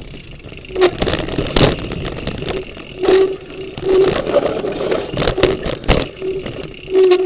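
Tyres crunch and rumble over dirt and stones.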